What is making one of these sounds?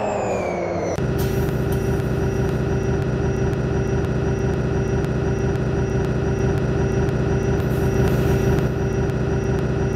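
A bus engine idles with a steady hum.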